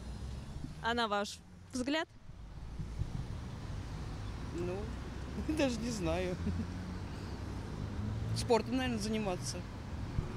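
A middle-aged woman speaks calmly in short phrases close to a microphone.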